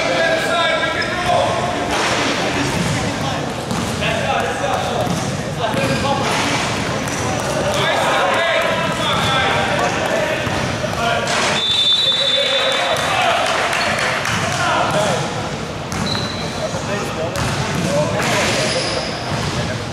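Young men call out and shout to each other in a large echoing gym.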